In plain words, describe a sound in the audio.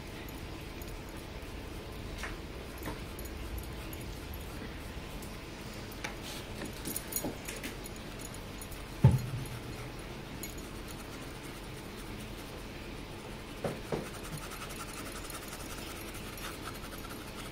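A brush dabs and scrapes softly on a painted surface.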